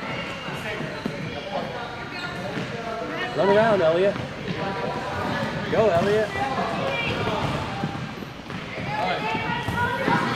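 A ball thuds as children kick it on a wooden floor.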